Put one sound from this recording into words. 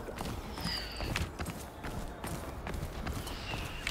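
Footsteps climb stone stairs.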